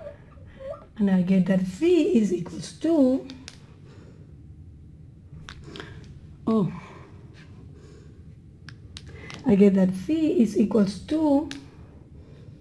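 A woman speaks calmly and clearly into a close microphone, explaining in short bursts.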